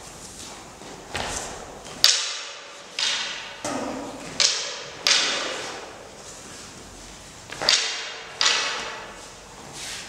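A sword whooshes sharply through the air, again and again, in an echoing hall.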